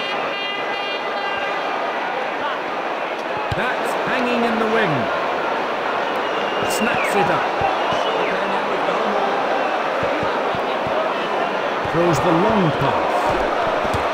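A large stadium crowd roars and cheers steadily.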